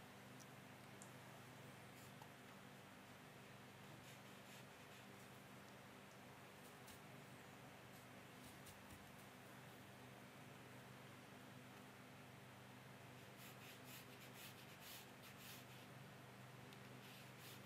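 A paintbrush strokes across watercolour paper.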